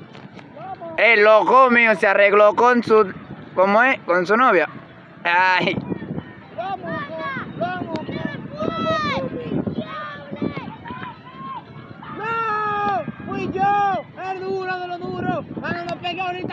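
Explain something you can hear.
Teenage boys shout excitedly outdoors.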